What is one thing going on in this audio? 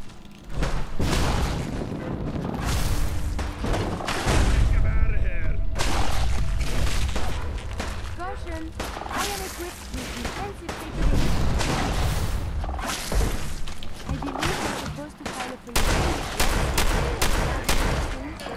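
Rapid gunshots from a rifle ring out in bursts.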